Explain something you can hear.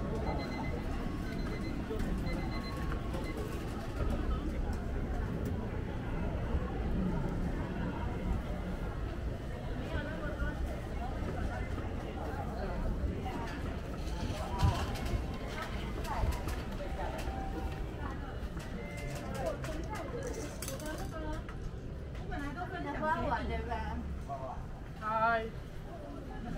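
A crowd chatters all around outdoors in a busy street.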